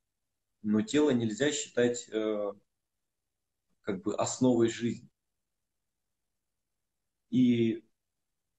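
A man speaks calmly and close to a microphone, pausing between phrases.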